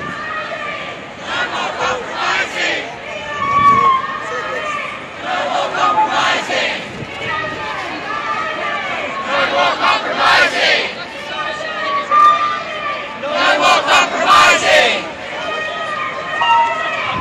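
Many people chatter in a crowd nearby.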